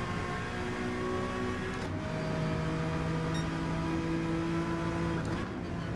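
A racing car engine roars at high revs, dropping briefly as the gears shift.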